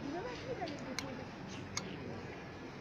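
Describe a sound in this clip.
Plastic hangers click against a metal rail.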